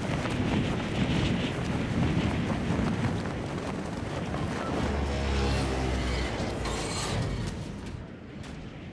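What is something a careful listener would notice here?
Air rushes loudly past during a fall.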